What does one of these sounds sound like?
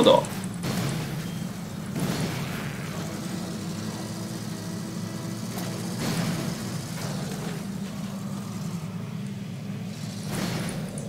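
A heavy armoured vehicle's engine rumbles steadily as it drives.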